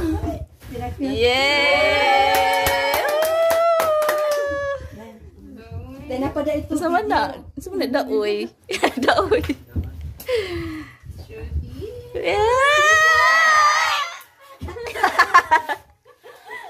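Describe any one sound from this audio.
A young woman laughs and squeals excitedly close by.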